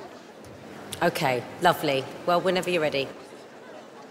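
A woman speaks warmly into a microphone.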